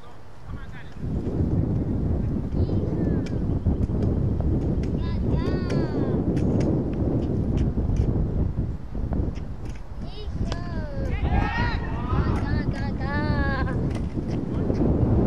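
Wind blusters across an open field.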